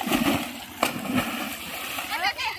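Water splashes loudly as someone jumps in.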